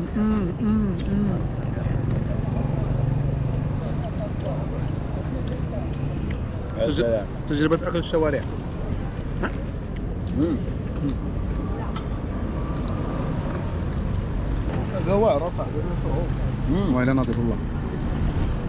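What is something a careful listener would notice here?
Young men talk casually close by, outdoors.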